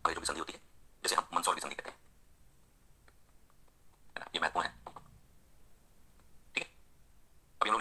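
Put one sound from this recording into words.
A man lectures with animation into a microphone.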